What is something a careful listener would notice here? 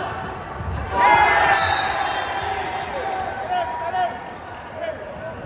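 Young men shout and call out to each other on the court.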